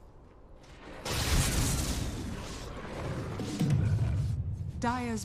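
Magic blasts whoosh and crackle in a game battle.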